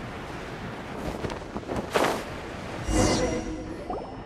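Sharp magical whooshes burst out and fade.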